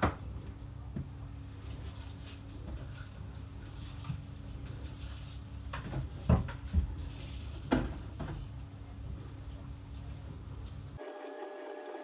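Dishes clatter and knock in a sink.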